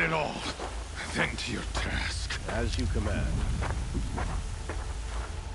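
A second man answers in a low voice.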